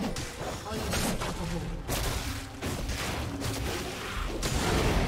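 Magic spells crackle and burst in a fight.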